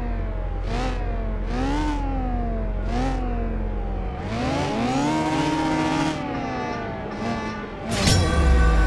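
A car engine revs up and down in short bursts.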